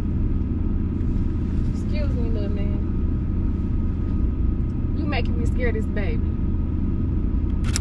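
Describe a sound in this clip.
A car's engine and tyres rumble steadily on the road.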